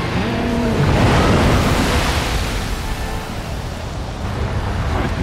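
Water crashes and surges with a loud rush.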